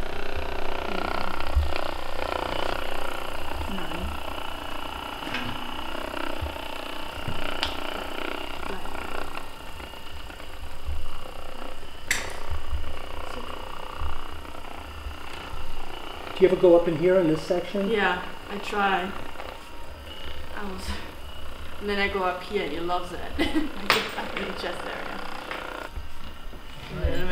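A massage gun buzzes steadily against a dog's body.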